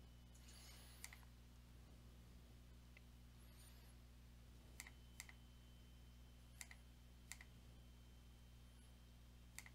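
Short, soft electronic clicks sound now and then from a card game.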